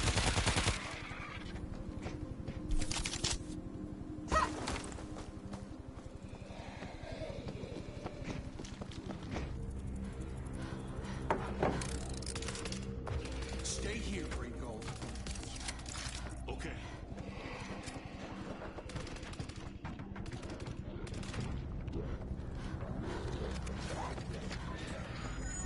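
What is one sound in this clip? Footsteps patter quickly on hard floors.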